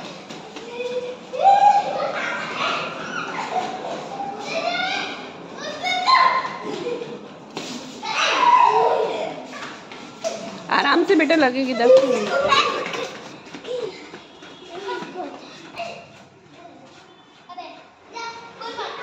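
Children's feet patter on a hard floor as they run.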